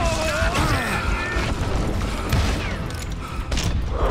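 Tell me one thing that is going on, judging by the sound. Revolvers fire loud gunshots in quick bursts.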